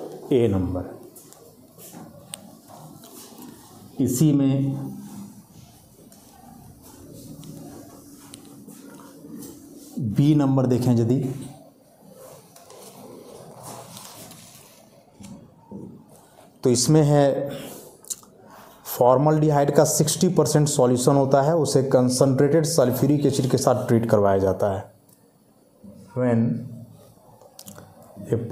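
A man speaks calmly nearby, pausing often.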